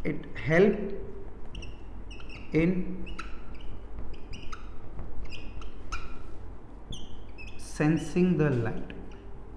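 A marker squeaks in short strokes on a whiteboard.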